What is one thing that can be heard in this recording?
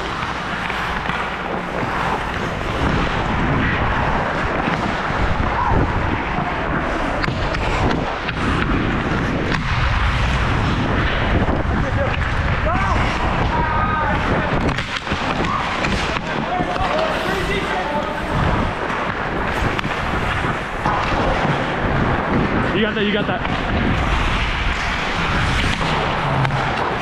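Ice skates scrape and hiss on the ice close by.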